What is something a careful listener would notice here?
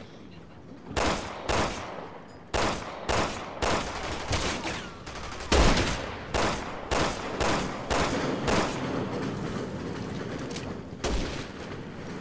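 Gunshots fire in quick, sharp bursts.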